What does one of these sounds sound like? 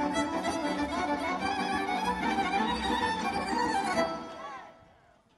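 Lively folk music plays loudly over loudspeakers outdoors.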